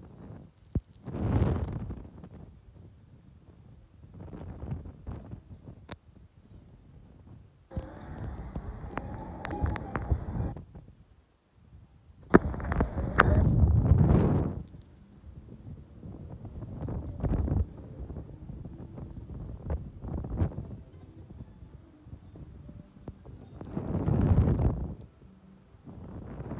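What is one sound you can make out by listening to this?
Wind buffets the microphone in strong, rising and falling gusts.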